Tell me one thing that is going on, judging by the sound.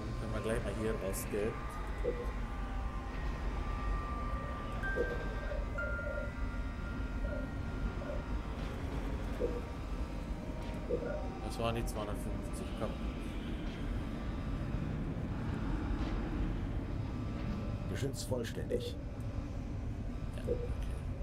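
Soft electronic menu tones blip and chime now and then.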